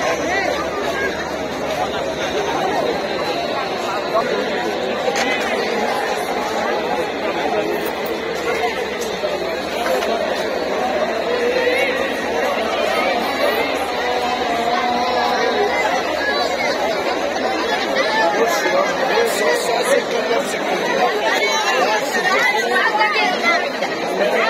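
A large crowd of men and women chatters all around, outdoors.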